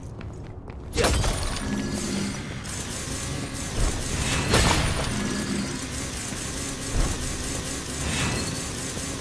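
Blasts boom and crackle with showers of sparks.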